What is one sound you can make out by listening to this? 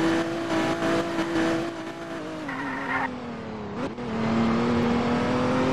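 A car engine hums steadily and drops in pitch as the car slows.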